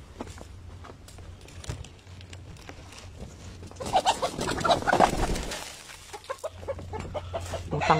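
Footsteps crunch on dry straw and litter.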